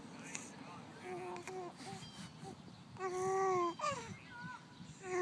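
A baby coos and babbles softly up close.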